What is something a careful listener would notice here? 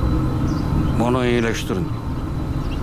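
A man answers slowly in a rough voice close by.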